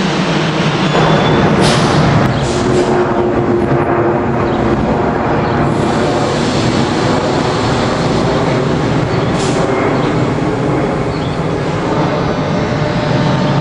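An electric locomotive hums steadily while standing still.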